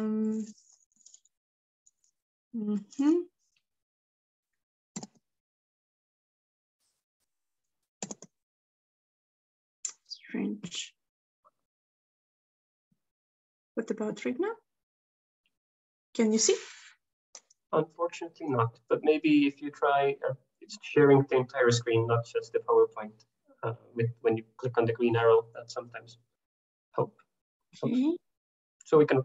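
A woman speaks haltingly over an online call.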